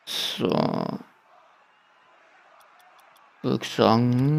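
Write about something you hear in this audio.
Soft menu clicks tick a few times.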